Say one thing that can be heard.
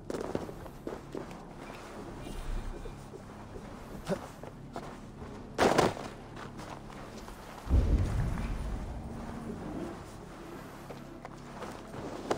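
Footsteps crunch on snow and wooden boards.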